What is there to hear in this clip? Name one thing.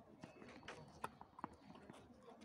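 A tennis ball bounces on a clay court nearby.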